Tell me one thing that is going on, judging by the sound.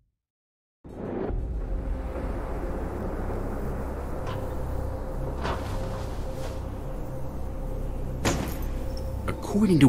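A fluorescent light hums steadily.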